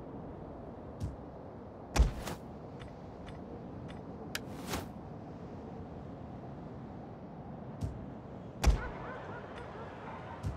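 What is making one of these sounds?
Short interface whooshes and clicks sound as menus open.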